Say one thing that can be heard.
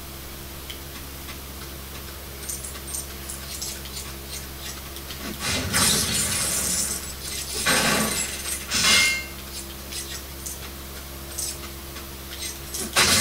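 Video game sound effects play from a television speaker.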